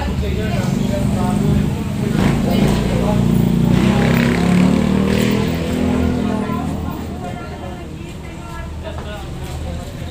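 A crowd of men and women chatter loudly all around, close by.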